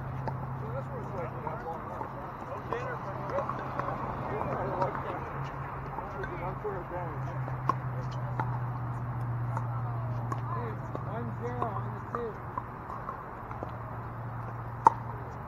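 Paddles sharply pop against balls across the courts.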